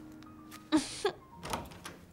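A door creaks as it swings open.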